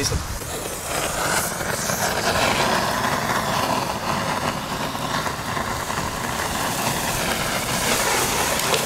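A firework fountain hisses and crackles as it sprays sparks.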